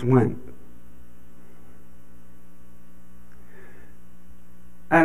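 An elderly man speaks with long pauses.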